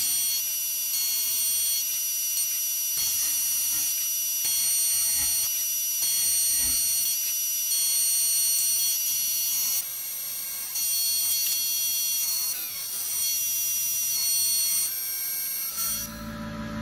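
A machine spindle whines steadily at a high pitch.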